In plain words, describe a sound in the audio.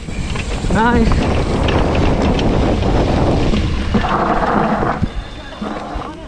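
Wind rushes loudly past a moving bicycle outdoors.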